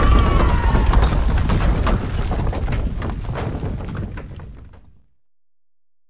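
A deep rumble roars as rocks tumble and fades away.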